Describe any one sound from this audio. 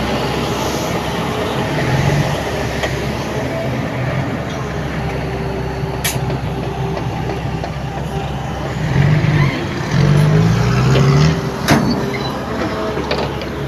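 A truck engine revs as the truck pulls away.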